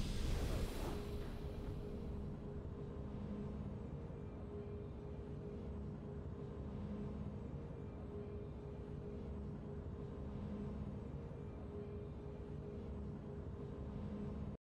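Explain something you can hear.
Soft, low ambient game music hums steadily.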